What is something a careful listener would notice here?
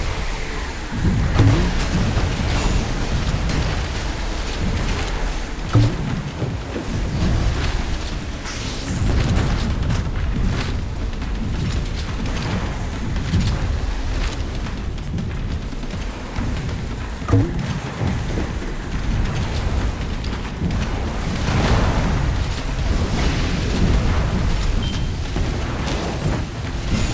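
Water splashes and rushes around a speeding boat.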